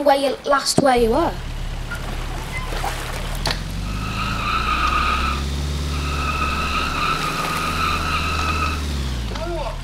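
A car engine revs and drones as a car drifts.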